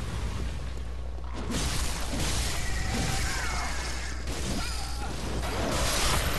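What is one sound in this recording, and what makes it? A blade slashes and strikes flesh.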